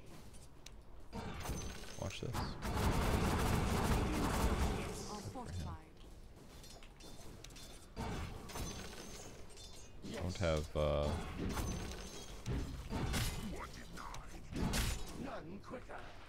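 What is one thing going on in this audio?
Game sound effects of spells and fighting play.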